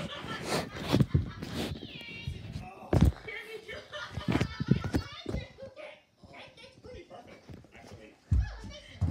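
Fabric rustles and bumps against a phone as it is handled.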